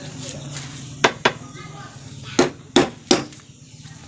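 A hammer knocks sharply on bamboo.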